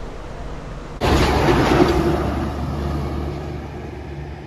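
A heavy truck engine rumbles past close by.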